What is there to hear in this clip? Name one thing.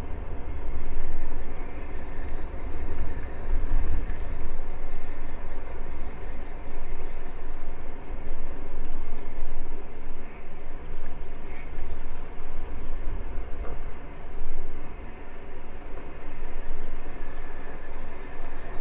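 Strong wind rumbles and buffets constantly, outdoors.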